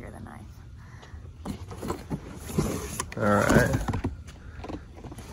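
Cardboard rustles and scrapes as a box is lifted out.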